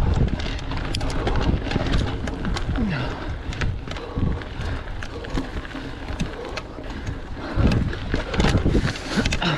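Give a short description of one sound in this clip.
A bicycle rattles and clicks over bumps.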